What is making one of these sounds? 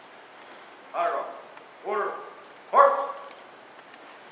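A man shouts short drill commands in an echoing hall.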